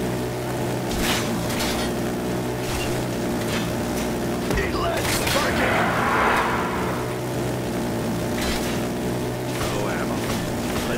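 A weapon fires bursts of blasts.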